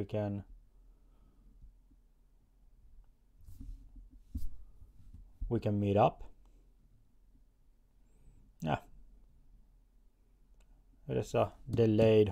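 A man speaks calmly and slowly, close by, with long pauses.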